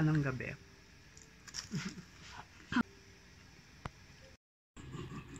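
A woman chews food.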